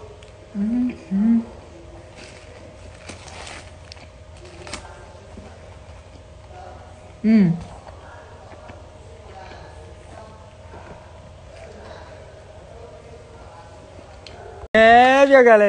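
A young woman chews food with soft smacking sounds.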